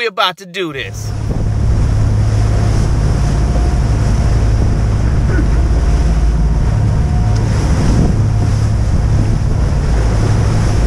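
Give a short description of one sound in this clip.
Waves splash and rush past a boat's hull.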